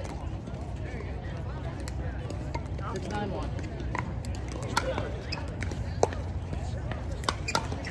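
Paddles strike a hard plastic ball with sharp pops.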